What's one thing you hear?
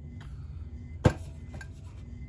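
A plastic paint bottle knocks against a hard surface.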